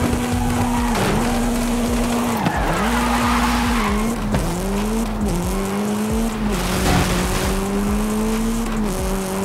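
A car engine revs hard and drops in pitch at each gear change.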